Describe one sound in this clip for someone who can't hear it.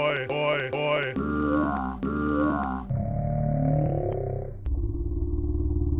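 A middle-aged man's voice exclaims theatrically in a cartoon, chopped into stuttering repeated fragments.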